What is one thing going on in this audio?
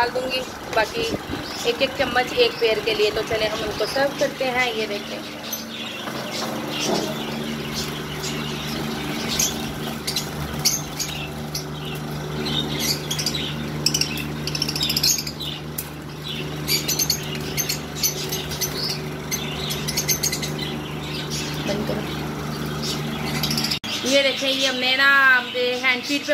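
Small birds chirp and squawk nearby.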